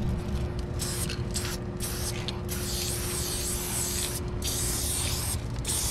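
A spray can hisses in bursts close by.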